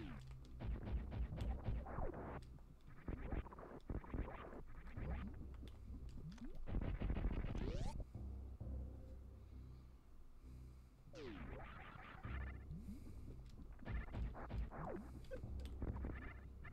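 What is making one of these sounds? Video game laser shots fire in quick bursts.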